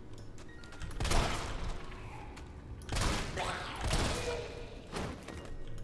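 A handgun fires several loud shots that echo.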